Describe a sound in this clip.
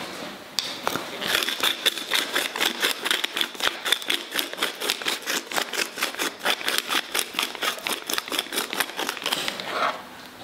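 A salt grinder crunches with quick rapid clicks.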